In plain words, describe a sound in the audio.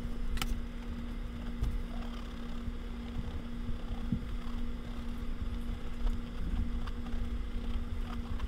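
A pencil sketches lightly on a stretched canvas.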